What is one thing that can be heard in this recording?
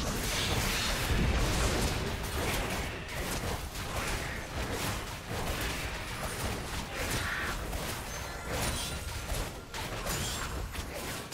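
Magic blasts and weapon impacts clash in a frantic fight.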